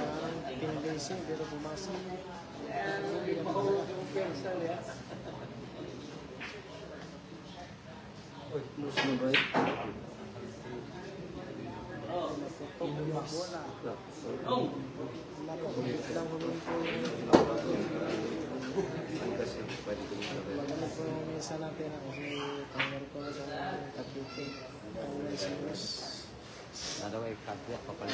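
A crowd of men and women chatter.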